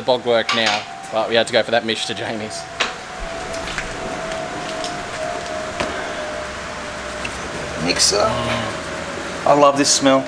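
A man speaks close by, casually.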